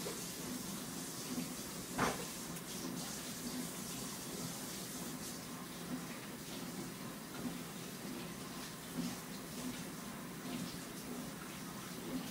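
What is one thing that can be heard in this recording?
A toddler makes small murmuring sounds.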